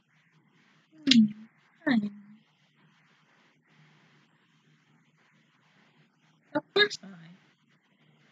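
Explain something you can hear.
A young woman speaks a few short words close to a microphone.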